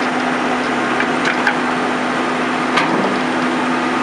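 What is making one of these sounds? Wooden boards crack and clatter as a shed is torn down.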